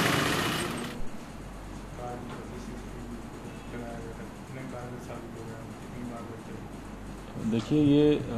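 A man speaks calmly and quietly into a clip-on microphone.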